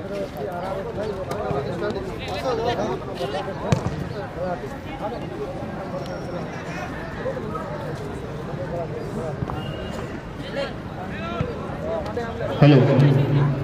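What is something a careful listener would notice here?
A crowd of spectators chatters and calls out in the distance, outdoors.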